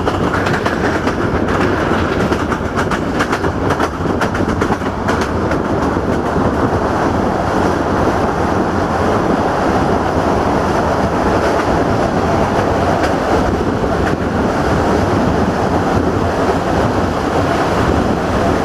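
Wind rushes loudly past an open train window.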